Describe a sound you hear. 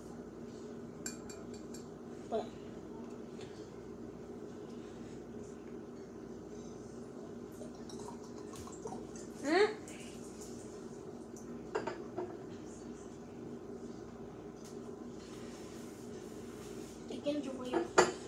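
Glass clinks and knocks against glass.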